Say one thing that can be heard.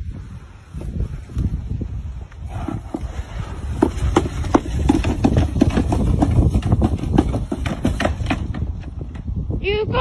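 A plastic sled scrapes and bumps along the ground.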